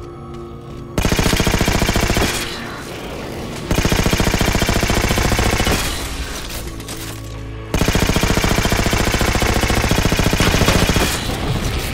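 A rapid-fire gun shoots in long bursts.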